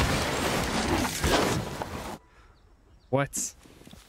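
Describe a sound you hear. A bicycle crashes with a heavy thud.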